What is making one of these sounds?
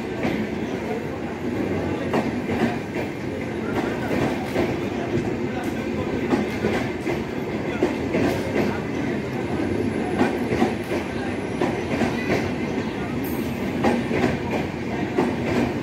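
A passenger train rumbles past at speed.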